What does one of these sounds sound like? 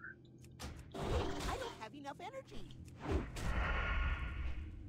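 A magic spell whooshes with a rushing burst.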